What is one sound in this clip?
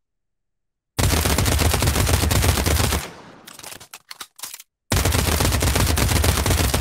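A submachine gun fires in long rapid bursts.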